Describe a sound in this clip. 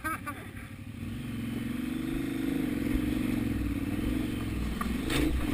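A motorcycle engine revs up louder.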